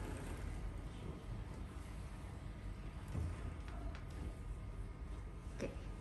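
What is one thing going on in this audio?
Cloth rustles as a curtain is pushed aside.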